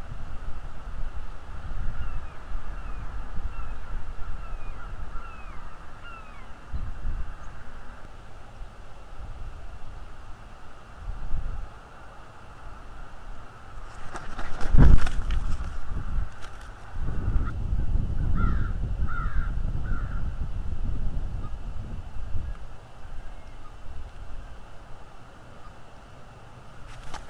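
Wind gusts against the microphone outdoors.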